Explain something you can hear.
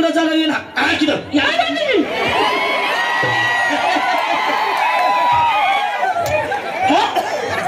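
A young man sings loudly through a microphone and loudspeakers.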